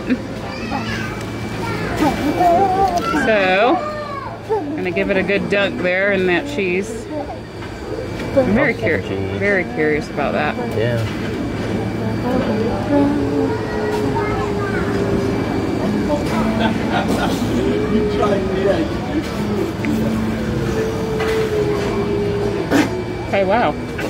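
A man talks and laughs nearby.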